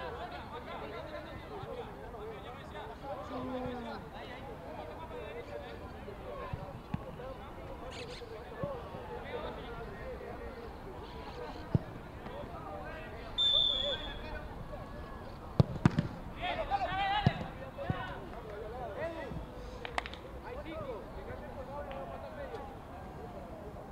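Young men call out and shout across an outdoor pitch.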